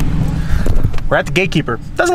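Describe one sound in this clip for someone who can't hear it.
A young man talks cheerfully close by.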